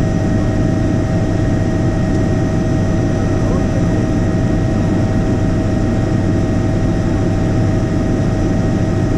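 A helicopter's engine and rotor drone loudly and steadily from inside the cabin.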